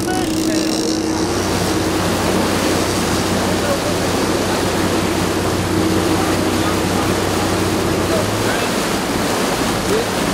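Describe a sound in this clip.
Water churns and rushes in a boat's wake.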